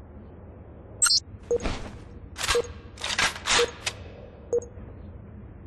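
Weapon handling clicks and clacks as a rifle is reloaded.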